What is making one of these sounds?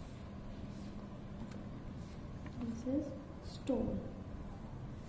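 A paper card slides softly across a wooden table.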